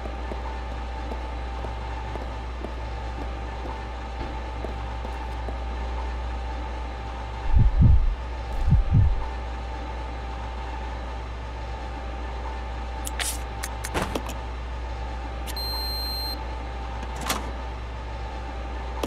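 Heavy machinery hums low and steady.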